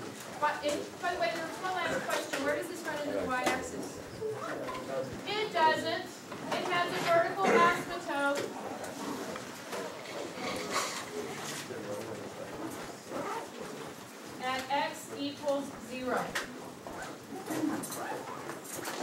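A middle-aged woman speaks clearly to a room, explaining calmly.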